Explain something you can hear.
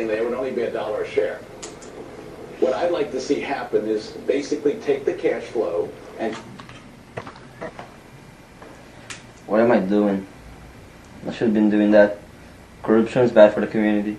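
A young man speaks in a relaxed way, close by.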